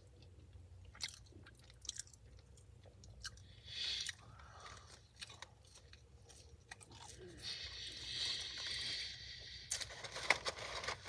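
A young man crunches and chews crisps up close.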